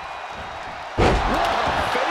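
A body slams onto the ring mat with a loud thud.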